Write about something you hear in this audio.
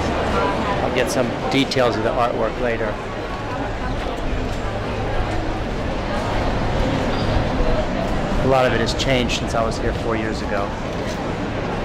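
A middle-aged man talks close by with animation.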